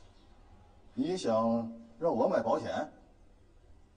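A man asks a question sharply, close by.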